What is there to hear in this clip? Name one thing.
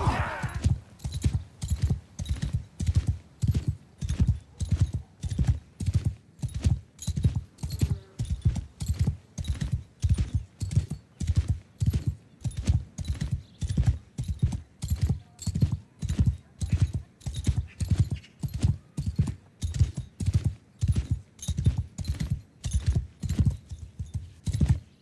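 A horse's hooves thud in a steady, quick rhythm on the ground.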